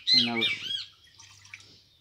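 Water pours into a metal pot.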